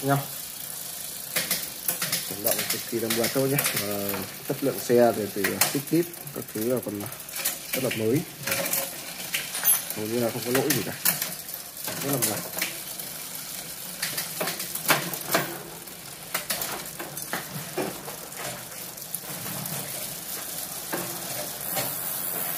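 A bicycle chain whirs as the pedals are turned by hand.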